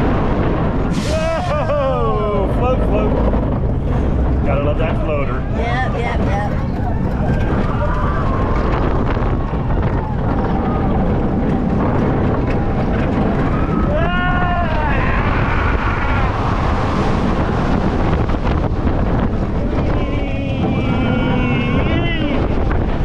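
A woman screams and whoops with excitement close by.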